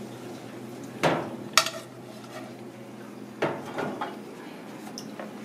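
A metal pan clinks against a strainer.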